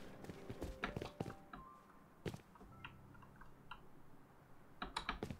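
Footsteps thud and knock on hard floors.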